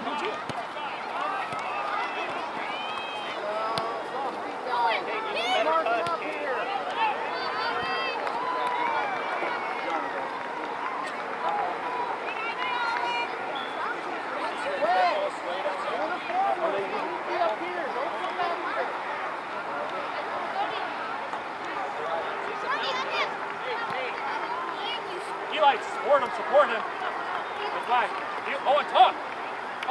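Young players shout and call out across an open field outdoors.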